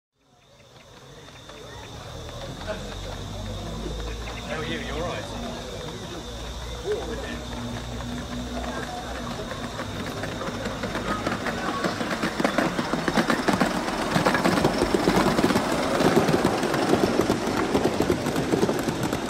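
A model train rumbles along its track, growing louder as it approaches.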